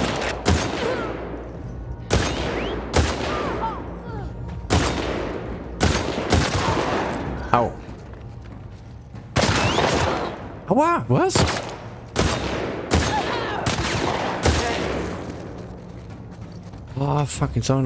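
Gunshots fire in loud, sharp bursts with echoing reverberation.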